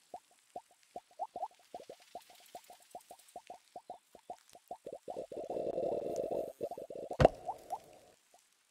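Short popping blips sound quickly in a game.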